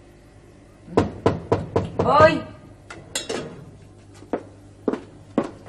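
Metal pot lids clink and clatter.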